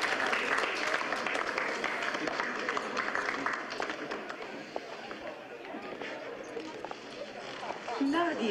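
A crowd claps and chatters.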